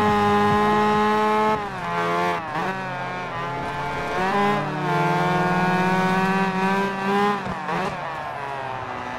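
A car engine roars at high revs, dropping in pitch with each gear change and as the car brakes.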